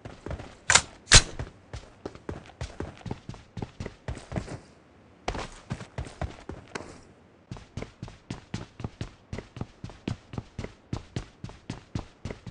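Footsteps thud quickly and evenly on hard ground.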